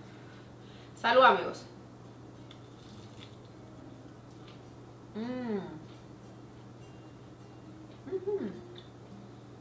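A young woman hums with pleasure while chewing.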